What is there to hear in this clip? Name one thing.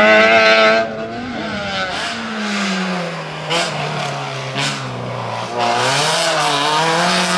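A second small hatchback race car engine revs hard and drops pitch through the gears.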